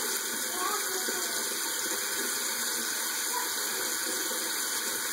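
A young boy scrubs his teeth with a toothbrush.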